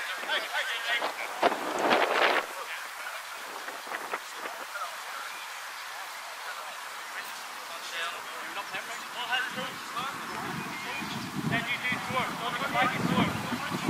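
Spectators chatter nearby.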